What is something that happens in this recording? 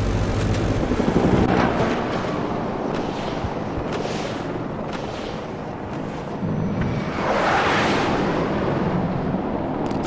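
Wind rushes past a jet at high speed.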